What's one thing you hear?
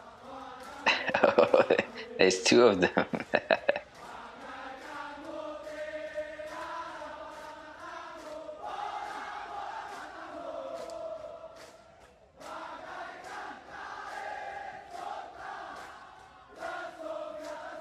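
A large group of soldiers chants in unison outdoors.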